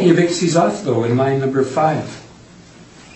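An adult speaks calmly through a microphone.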